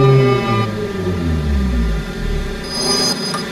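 A train motor hums and winds down in pitch.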